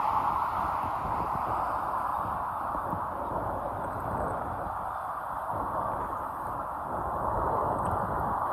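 Wind blusters and rumbles across the microphone outdoors.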